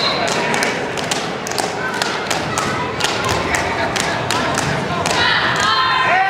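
Shoes squeak and thud on a mat.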